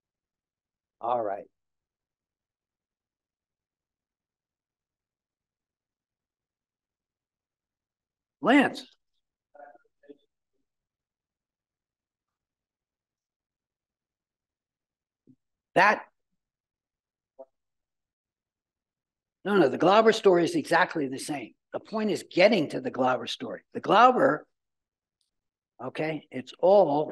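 An elderly man lectures through a microphone, speaking in short bursts with long pauses.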